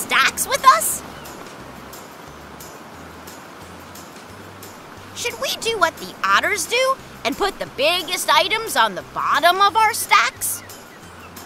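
A cartoon character speaks in a bright, childlike voice.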